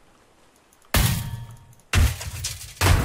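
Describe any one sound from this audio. A hammer strikes metal with loud clanks.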